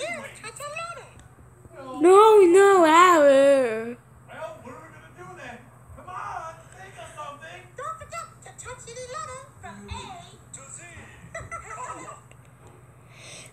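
A high, childlike puppet voice talks with animation.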